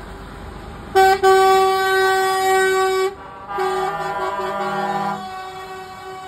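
Truck air horns blare loudly in long blasts.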